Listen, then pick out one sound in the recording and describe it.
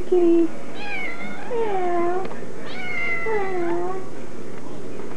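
A domestic cat meows.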